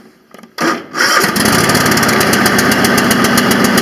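A lawn tractor engine catches and runs with a steady rattling rumble.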